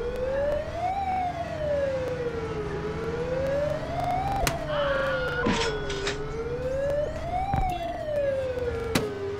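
A siren wails, rising and falling slowly.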